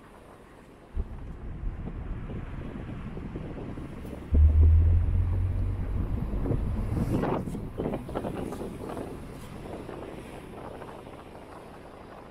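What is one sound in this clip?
A sports car engine rumbles and revs as it drives past close by.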